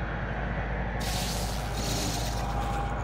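An electronic scanner hisses and whirs.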